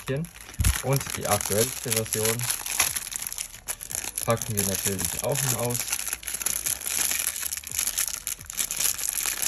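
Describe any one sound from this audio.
Plastic wrapping crinkles and rustles in someone's hands.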